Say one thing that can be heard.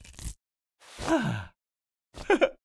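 A man grunts with strain.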